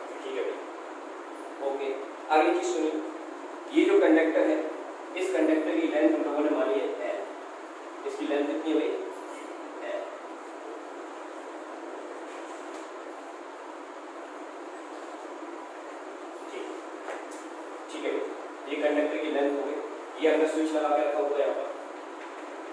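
A young man speaks calmly nearby in a slightly echoing room.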